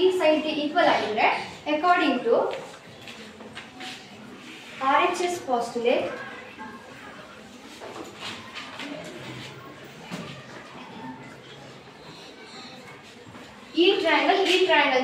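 A teenage girl speaks clearly and calmly nearby, explaining.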